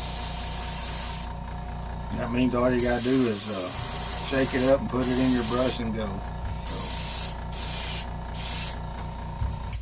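An airbrush hisses in short bursts.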